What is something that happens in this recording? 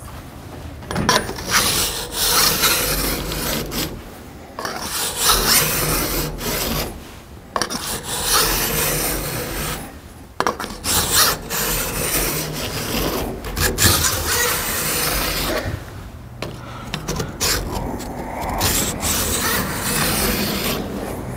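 A flat file scrapes back and forth along a steel bar.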